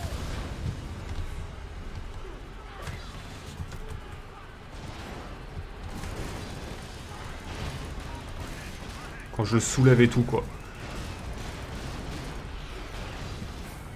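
Loud explosions boom and rumble.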